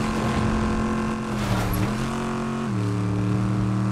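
Water splashes under a car's wheels.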